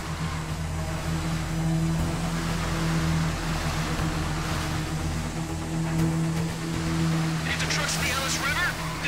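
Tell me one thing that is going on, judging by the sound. A motorbike engine hums steadily as it rides along.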